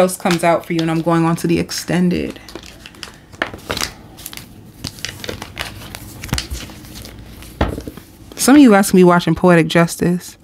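Playing cards slide and slap onto a table.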